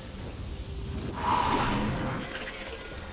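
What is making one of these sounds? A loud whoosh sweeps past.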